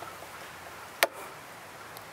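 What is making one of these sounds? A torque wrench gives a sharp click.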